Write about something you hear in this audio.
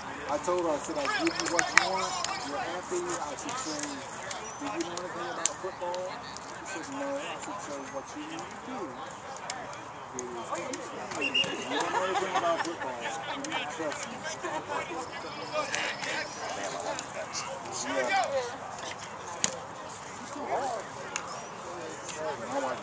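Young men talk and call out across an open field outdoors.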